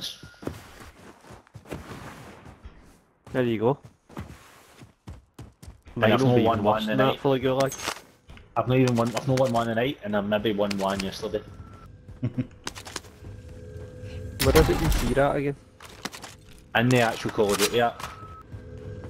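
Footsteps crunch and thud on the ground.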